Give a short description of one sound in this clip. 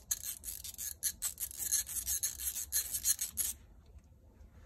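Metal tools click and scrape against engine parts.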